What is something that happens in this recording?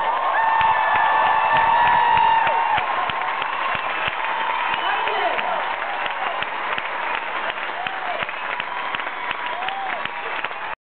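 A crowd cheers and whistles in a large echoing hall.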